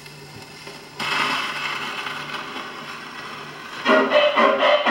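An old record plays tinny, crackling music through a gramophone.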